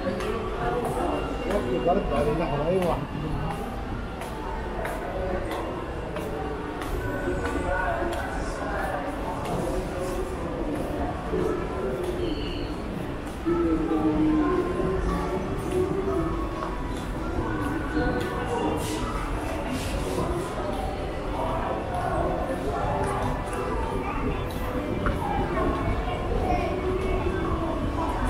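Many voices murmur and echo through a large hall.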